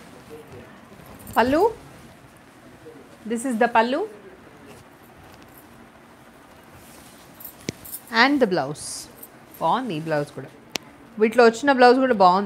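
Silk fabric rustles as it is unfolded.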